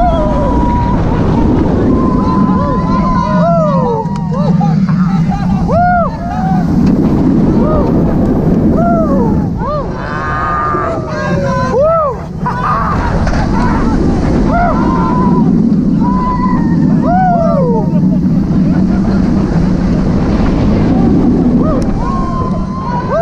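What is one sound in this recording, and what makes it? Wind roars loudly past throughout.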